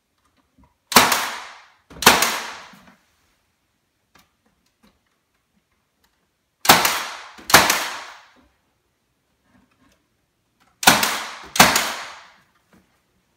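A nail gun fires sharply in short pops with a brief ringing tail.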